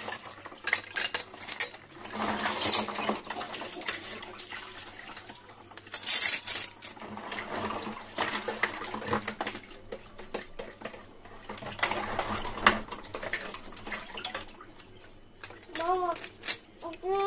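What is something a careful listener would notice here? Water runs and splashes as dishes are washed.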